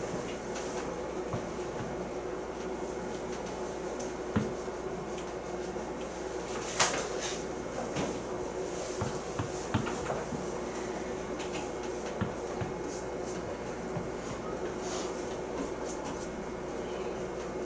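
A pen scratches and taps on paper nearby.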